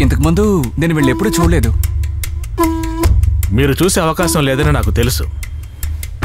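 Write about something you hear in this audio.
A man speaks with emotion, close by.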